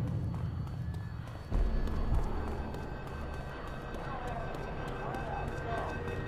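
Footsteps run on hard pavement.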